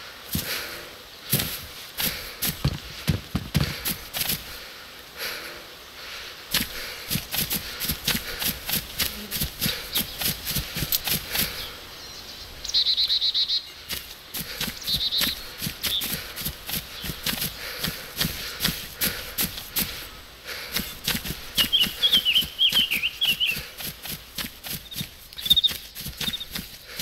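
Footsteps rustle through tall grass at a steady pace.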